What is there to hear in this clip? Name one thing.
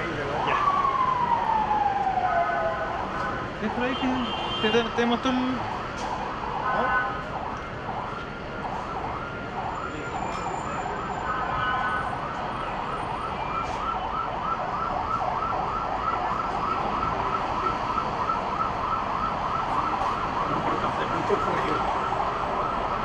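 A fire engine siren wails in the distance.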